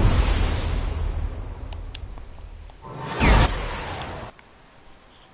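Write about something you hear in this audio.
Game sound effects of a character flying through the air roar loudly.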